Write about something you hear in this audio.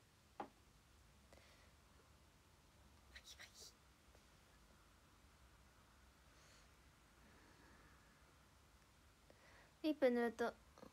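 A young woman speaks softly and briefly, close to a phone microphone.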